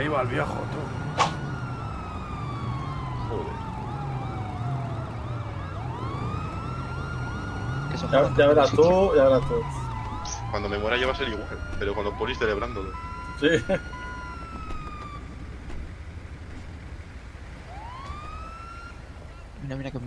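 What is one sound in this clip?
A police siren wails, rising and falling, close by.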